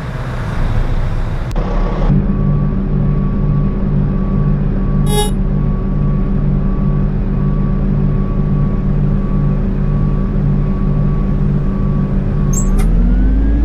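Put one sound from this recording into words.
A bus engine idles with a steady throbbing.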